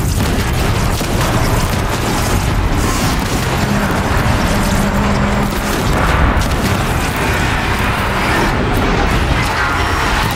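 Sparks crackle as arrows strike a metal creature.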